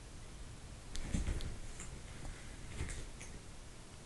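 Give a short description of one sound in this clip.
A cat shifts about on a rustling blanket.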